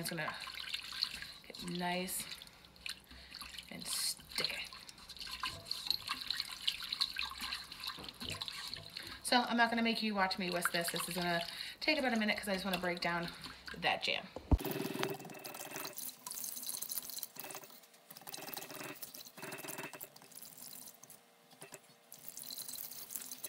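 A wire whisk scrapes and clicks against the inside of a metal pot.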